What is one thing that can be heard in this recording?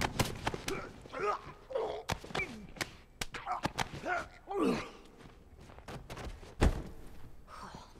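A man grunts and struggles in a fight.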